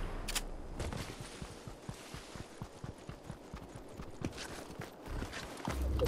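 Quick footsteps patter on a paved road.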